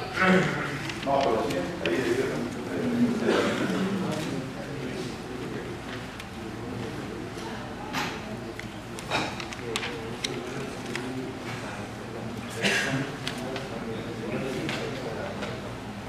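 Paper pages rustle and turn.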